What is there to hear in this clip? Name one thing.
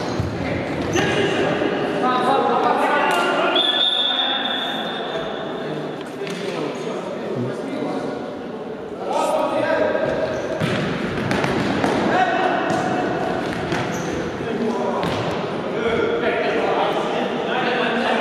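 Men shout to each other in a large echoing hall.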